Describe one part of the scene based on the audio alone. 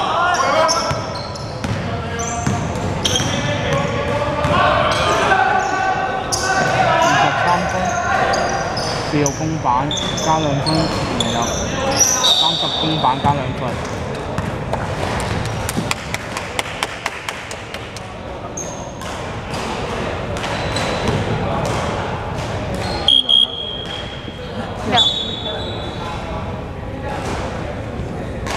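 Young men shout to each other across a large echoing hall.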